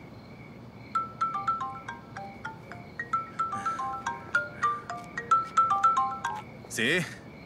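Phone keys beep as a number is dialled.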